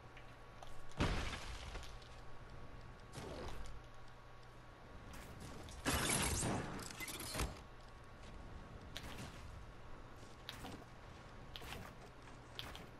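Building pieces snap into place with hard clattering thuds.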